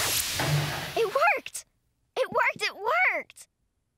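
A young girl speaks brightly and excitedly.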